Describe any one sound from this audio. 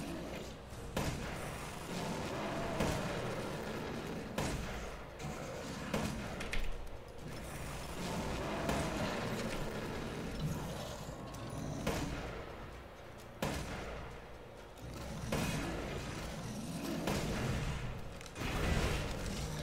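Gunshots fire in loud sharp bursts.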